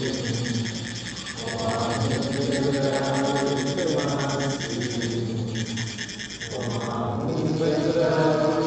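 Metal funnels rasp rhythmically as they are rubbed together.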